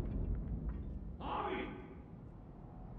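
A young man groans in pain.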